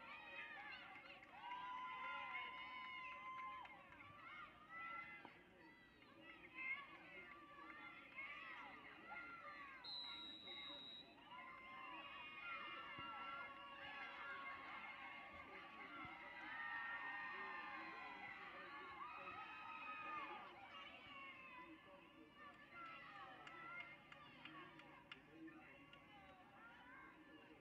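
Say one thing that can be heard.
A crowd of men and women shouts and cheers outdoors at a distance.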